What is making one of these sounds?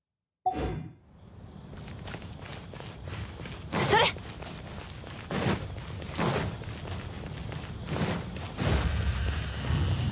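Quick footsteps patter across stone.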